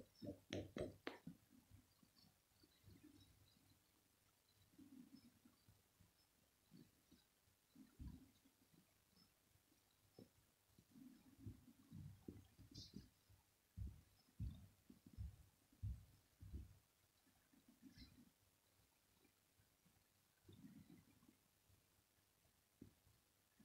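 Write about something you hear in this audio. A cat purrs softly up close.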